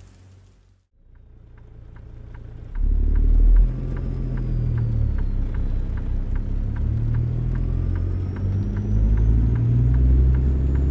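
A truck engine rumbles deeply and steadily.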